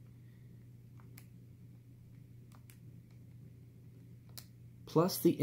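Calculator buttons click softly as they are pressed.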